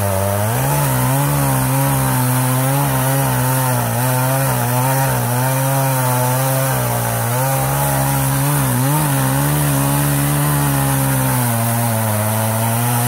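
A chainsaw engine roars loudly and close by, its pitch wavering as it cuts.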